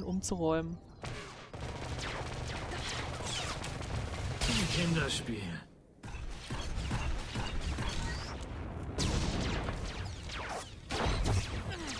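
Blaster shots and energy blasts fire in quick bursts.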